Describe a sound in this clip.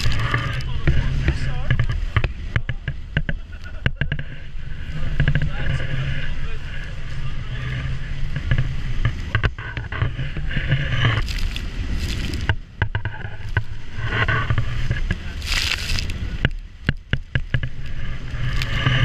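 Spray and waves slap against a speeding boat's hull.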